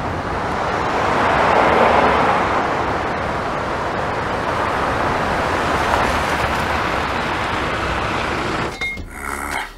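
Tyres hiss on the road as cars pass.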